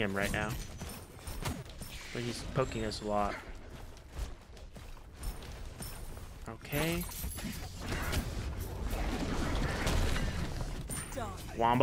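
Fighting sounds from a game clash and thud in quick bursts.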